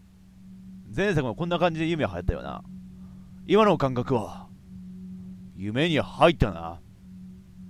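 A young man speaks quietly and calmly, close up.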